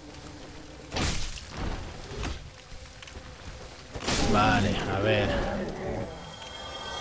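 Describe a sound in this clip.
A fireball bursts with a loud whoosh and crackle.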